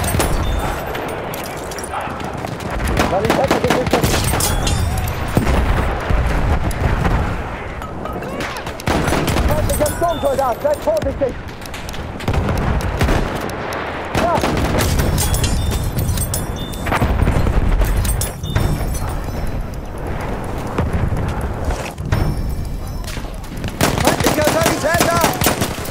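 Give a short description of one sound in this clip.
Gunshots crack and boom repeatedly.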